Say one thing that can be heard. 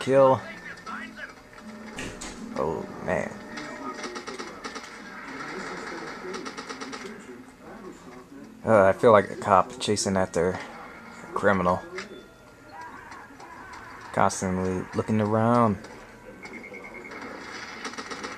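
Gunfire crackles from a video game.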